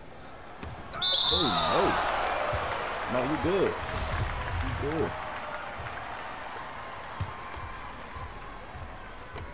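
A crowd cheers in a large echoing arena.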